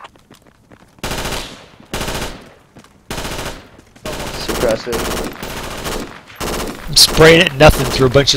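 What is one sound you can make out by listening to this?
Boots thud quickly on grass as soldiers run.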